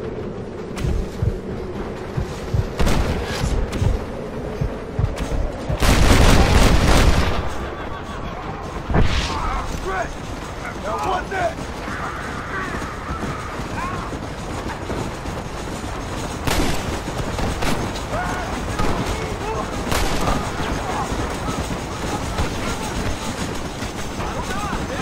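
Horse hooves gallop over dry ground.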